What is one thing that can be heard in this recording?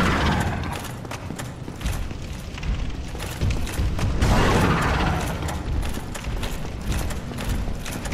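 Armored footsteps clank rapidly on stone.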